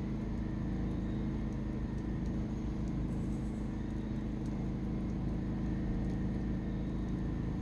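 Flames roar softly in a steady rush.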